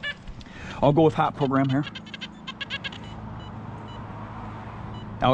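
A metal detector gives short electronic beeps.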